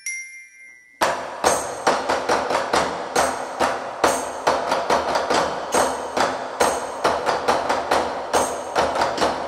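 A drum kit plays along.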